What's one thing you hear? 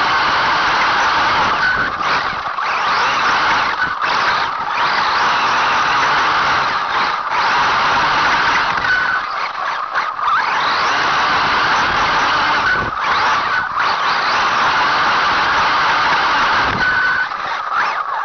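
A small electric motor whines loudly as a toy vehicle races along.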